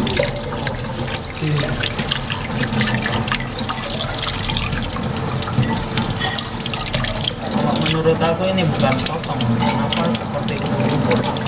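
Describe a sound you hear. Squid flesh squelches wetly under rubbing hands.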